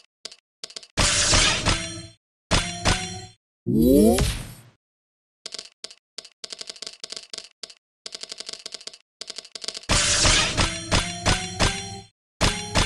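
Loud bright electronic bursts ring out as game combos clear.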